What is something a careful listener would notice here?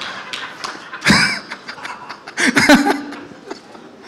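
A crowd laughs and cheers.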